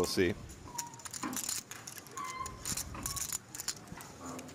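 Poker chips click together softly.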